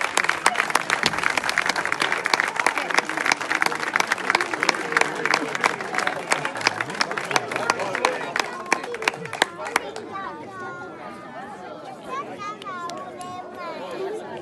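A crowd of people chatters quietly outdoors.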